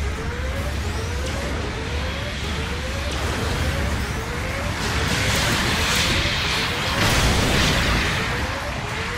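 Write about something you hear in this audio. Rocket thrusters roar as a robot boosts forward.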